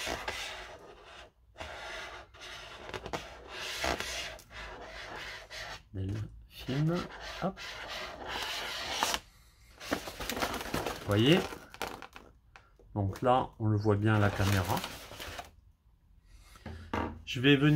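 A foil balloon crinkles and rustles as it is handled.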